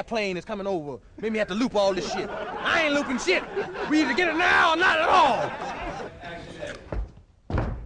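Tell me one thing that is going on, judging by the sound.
A man talks in a tense, low voice close by.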